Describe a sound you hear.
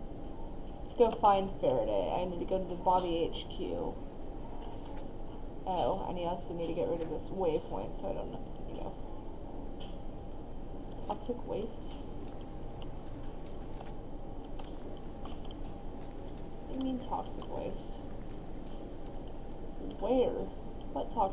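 A young woman talks casually and close to a microphone, in short bursts.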